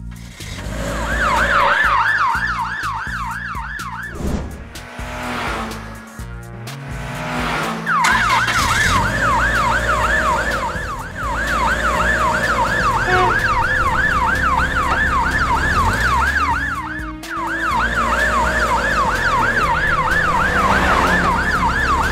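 An ambulance siren wails with a rapid rising and falling tone.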